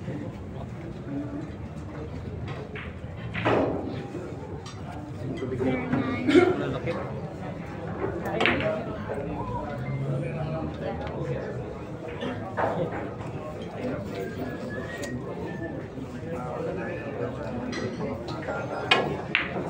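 A crowd murmurs softly in a large room.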